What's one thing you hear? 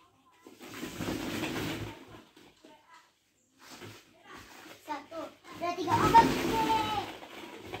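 Plastic balls rattle and rustle as a small child moves among them.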